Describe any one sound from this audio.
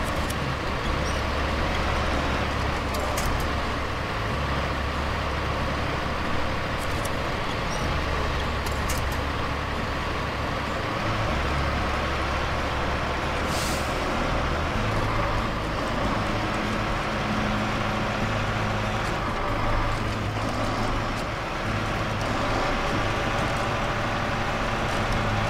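A truck engine rumbles and strains at low speed.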